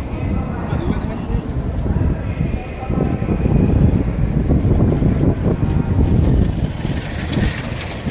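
Footsteps walk along a pavement.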